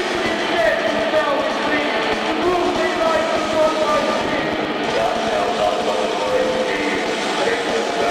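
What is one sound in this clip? Drums and cymbals pound hard.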